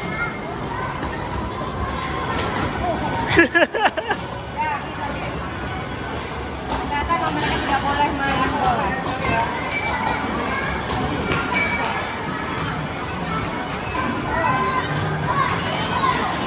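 Plastic balls thud and roll down an arcade ramp.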